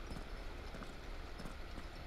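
Footsteps scrape on a stone floor.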